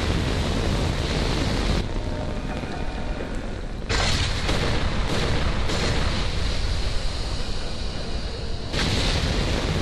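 A fiery blast roars and crackles with sparks.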